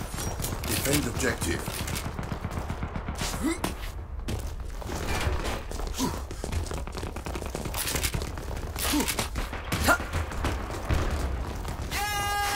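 Footsteps patter quickly on hard floors.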